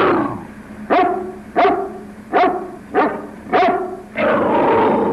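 A large dog barks loudly several times.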